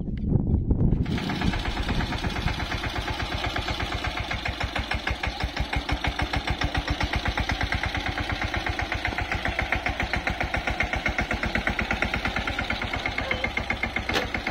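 A tractor engine chugs steadily and rhythmically nearby.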